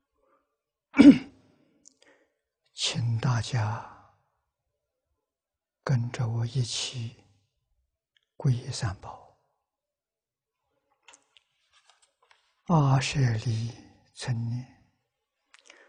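An elderly man recites slowly in short phrases, close to a microphone.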